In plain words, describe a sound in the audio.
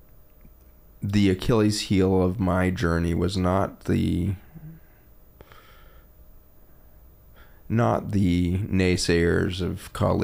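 A man speaks calmly and thoughtfully into a close microphone.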